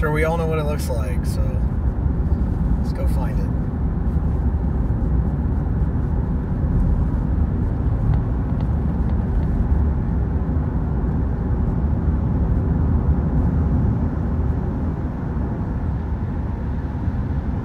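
A car engine hums and tyres roll steadily on the road, heard from inside the car.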